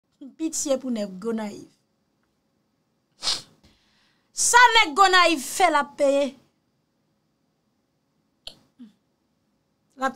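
A young woman speaks expressively into a close microphone, in short bursts with pauses.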